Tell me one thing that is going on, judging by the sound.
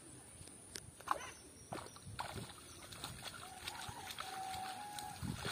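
Water splashes and sloshes as a palm frond is pulled through it.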